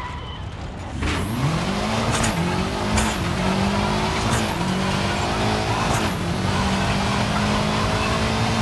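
A car engine revs hard, rising through the gears with each shift.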